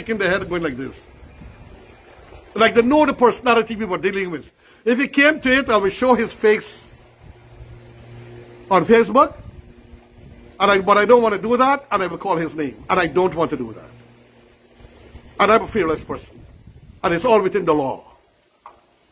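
An elderly man talks with animation close by, in short bursts with pauses.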